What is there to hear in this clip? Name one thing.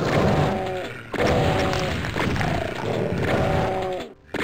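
A pistol fires in quick bursts.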